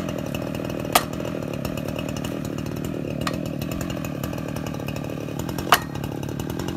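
A chainsaw runs steadily, cutting into a tree trunk.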